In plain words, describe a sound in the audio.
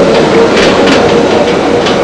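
A monorail train rolls along its track.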